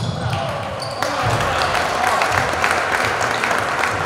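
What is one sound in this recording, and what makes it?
A small crowd cheers in an echoing gym.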